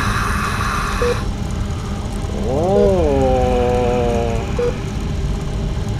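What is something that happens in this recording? Fizzy soda sprays and hisses out of a bottle.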